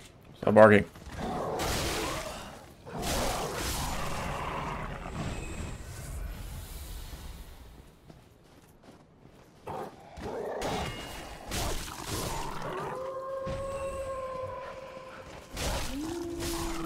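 A sword slashes and strikes in a fight.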